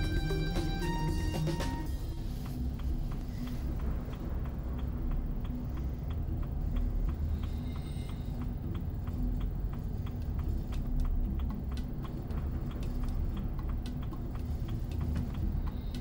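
A vehicle engine rumbles low and steady from inside the car.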